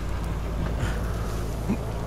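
A buggy's engine rumbles low and steady.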